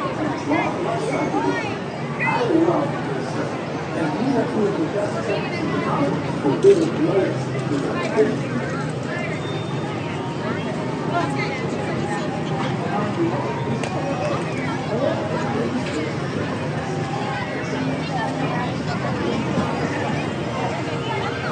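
A crowd of men, women and children chatters all around outdoors.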